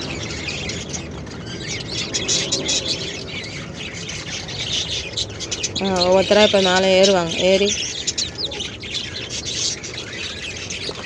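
Chicks peep and cheep rapidly close by.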